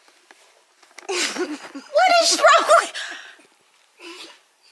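An older woman laughs and talks excitedly nearby.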